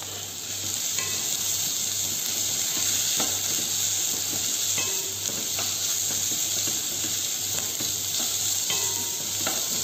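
A wooden spatula stirs vegetables in a metal pot.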